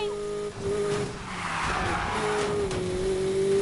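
Tyres screech as a car drifts around a corner.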